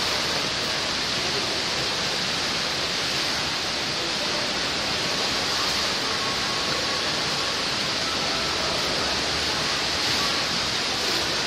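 Water rushes and churns steadily, heard from underwater.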